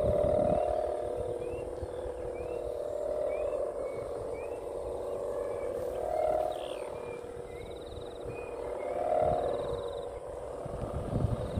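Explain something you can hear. A bird calls overhead with short, repeated chirps.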